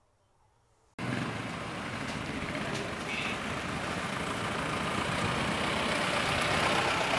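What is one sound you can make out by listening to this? A vehicle engine hums as it drives slowly closer on a street.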